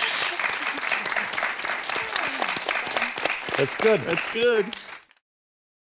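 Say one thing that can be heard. Hands clap rapidly in applause.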